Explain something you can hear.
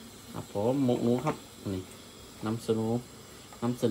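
A metal pot lid clinks as it is lifted off.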